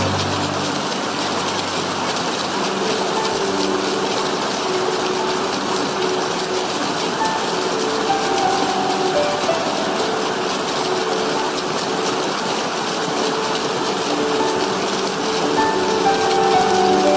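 A small waterfall rushes and splashes over rocks close by.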